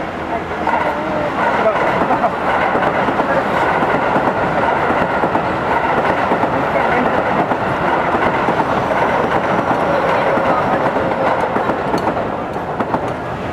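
A train rumbles past close by.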